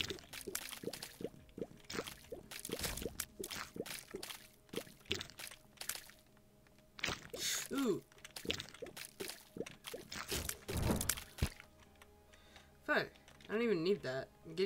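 Short wet popping shots fire again and again in quick succession.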